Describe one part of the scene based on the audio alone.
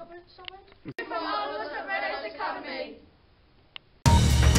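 Several children speak together loudly into a microphone.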